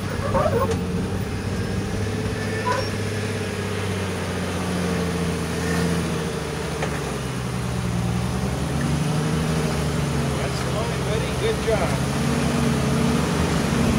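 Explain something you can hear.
Tyres grind and scrape on rock.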